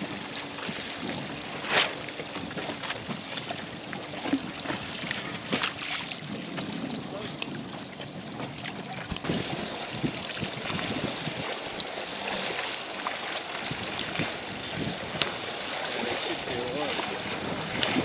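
Wind blows steadily outdoors over open water.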